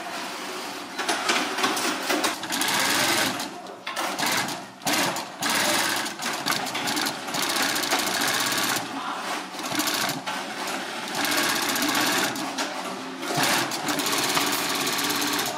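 A sewing machine whirs in rapid bursts.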